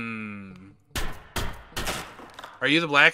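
A pickaxe strikes rock a few times.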